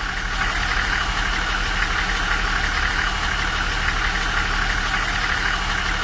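A bus engine idles with a steady low rumble.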